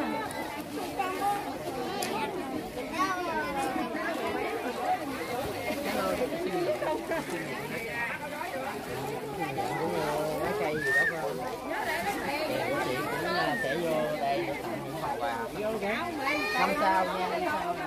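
Plastic sacks rustle as they are handled.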